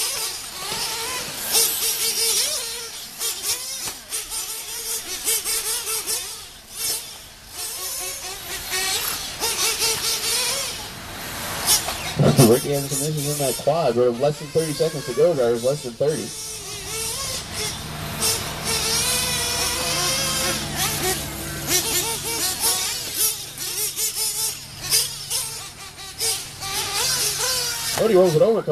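Tyres of small cars crunch and skid over dirt.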